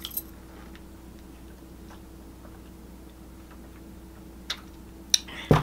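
A woman sips and swallows close to a microphone.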